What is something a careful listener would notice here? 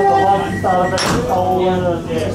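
Sliding train doors thud shut.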